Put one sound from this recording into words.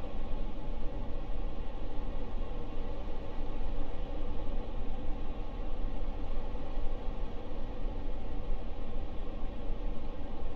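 Air rushes past a rocket in a steady low roar as it descends.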